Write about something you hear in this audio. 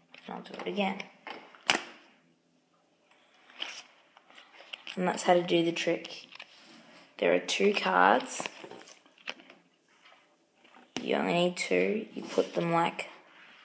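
Playing cards rustle and flick in a boy's hands.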